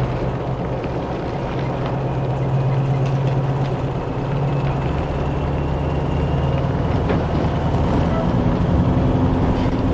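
A vehicle engine rumbles steadily as it drives over snow.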